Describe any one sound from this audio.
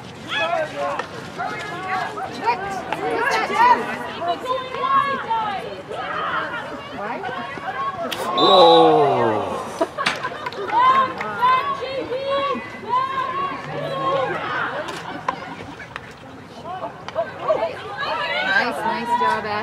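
Hockey sticks knock sharply against a ball.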